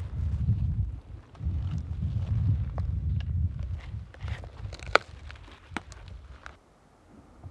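Footsteps crunch and brush through low forest undergrowth close by.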